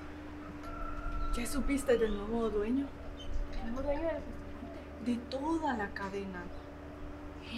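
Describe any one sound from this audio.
A young woman speaks with animation nearby.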